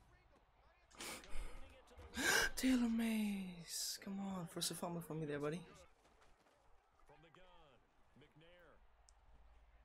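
A young man talks excitedly into a close microphone.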